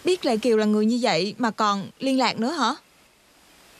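A young woman speaks emotionally, close by.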